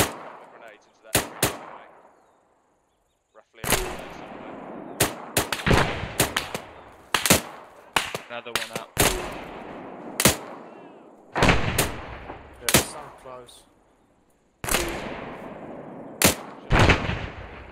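Rifle shots crack loudly and echo across open country.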